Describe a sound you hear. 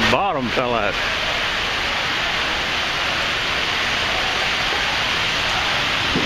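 Rain falls steadily on pavement outdoors.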